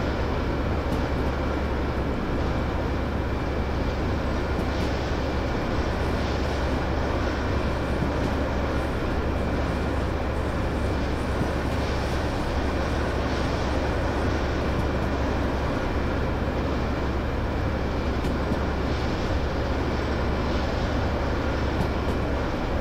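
Train wheels roll and rattle over the rails.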